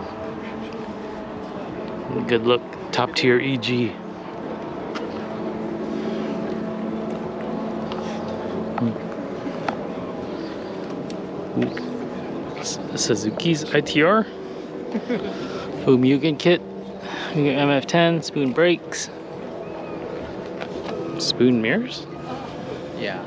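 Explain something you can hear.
A crowd murmurs outdoors in the background.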